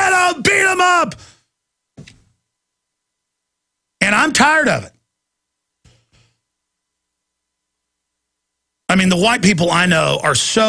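A middle-aged man speaks animatedly into a close microphone, in bursts with pauses.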